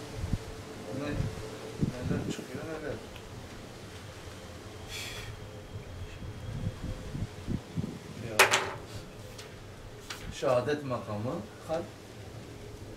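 An elderly man speaks calmly, as if teaching.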